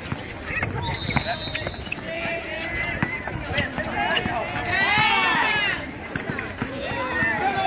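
A basketball bounces on an asphalt court.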